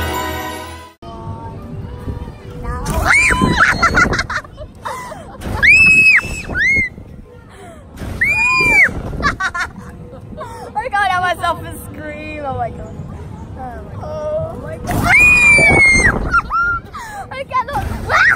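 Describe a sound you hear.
A roller coaster rumbles along its track.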